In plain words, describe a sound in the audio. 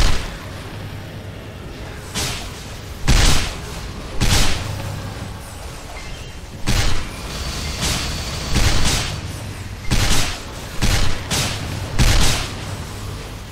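Game spell effects blast and whoosh in repeated bursts.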